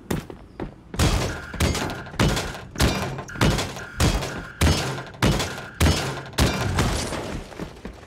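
A pickaxe strikes metal again and again in quick, heavy blows.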